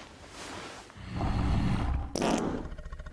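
A large creature growls deeply.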